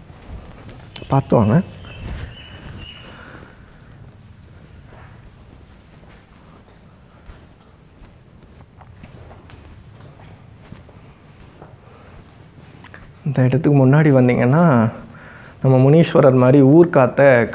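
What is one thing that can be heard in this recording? Footsteps scuff softly on a stone floor.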